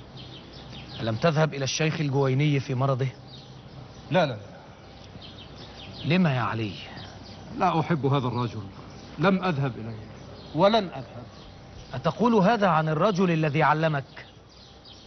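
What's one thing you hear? Another man answers in a calm voice close by.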